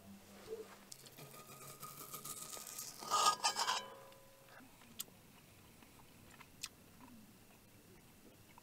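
A metal spoon scrapes around a metal pan.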